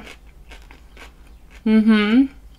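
A woman chews crunchy food close by.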